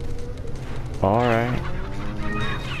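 A cow moos.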